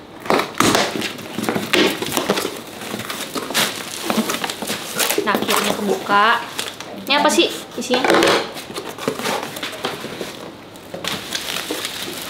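A cardboard box is torn open, its flaps scraping and rustling.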